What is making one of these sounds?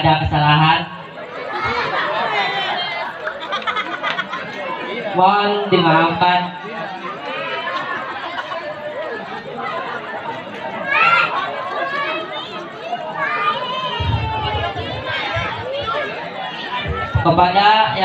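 A young man speaks with animation through a microphone and loudspeakers.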